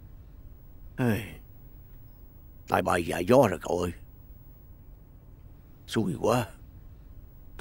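An elderly man speaks slowly, close by.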